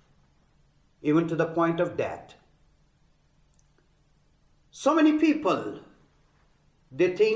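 A man speaks calmly and deliberately into a nearby microphone, with pauses between phrases.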